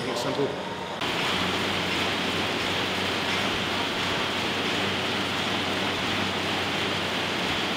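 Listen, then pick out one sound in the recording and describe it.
An air bike's fan whooshes steadily as it is pedalled hard.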